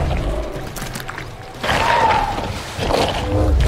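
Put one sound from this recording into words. Footsteps run across soft ground.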